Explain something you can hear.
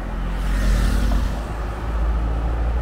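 A motorcycle engine hums past close by.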